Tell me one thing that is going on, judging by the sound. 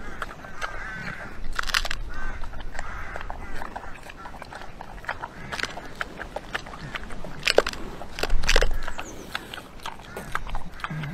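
A pig chomps and smacks noisily on food close by.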